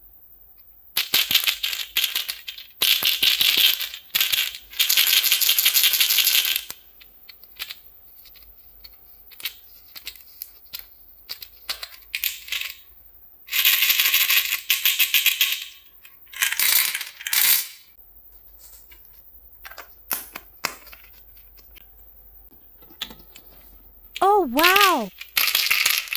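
Hard candies rattle inside a small plastic bottle as it is shaken.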